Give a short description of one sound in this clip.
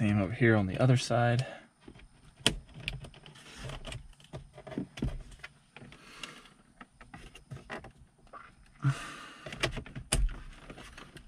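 Plastic trim clicks and snaps as a pry tool works it loose.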